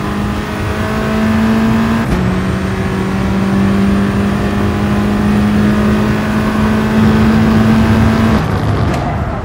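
A racing car engine roars at high revs, dropping in pitch as it shifts gear.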